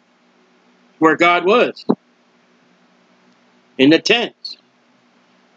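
A middle-aged man speaks calmly into a close microphone, in short bursts.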